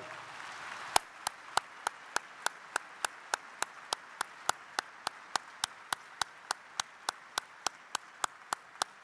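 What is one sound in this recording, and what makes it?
An older man claps his hands in a slow, steady rhythm.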